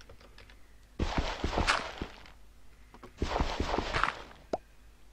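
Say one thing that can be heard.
A pickaxe digs through dirt with gritty crunching bursts.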